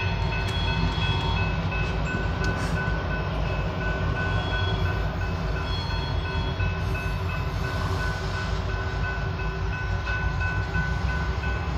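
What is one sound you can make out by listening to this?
Train wheels squeal with steady high tones.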